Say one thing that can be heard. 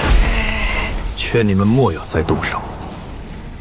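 A young man speaks coldly and calmly.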